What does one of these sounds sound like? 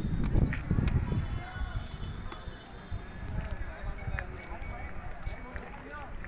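Cattle hooves shuffle and clop on a concrete floor.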